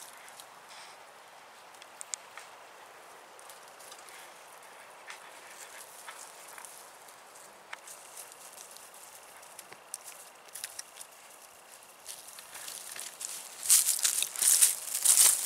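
Small dogs patter and rustle through dry leaves and undergrowth.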